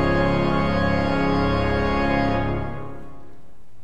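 An organ holds a loud chord that dies away in a large echoing hall.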